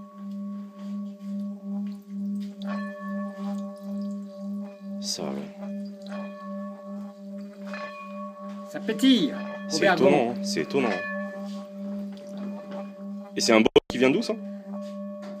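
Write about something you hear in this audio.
Water in a singing bowl splashes and sputters as the bowl vibrates.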